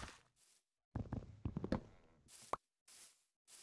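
A stone axe chops a wooden log in a block-building video game.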